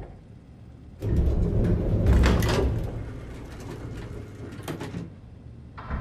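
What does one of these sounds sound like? A metal folding gate rattles and clanks open.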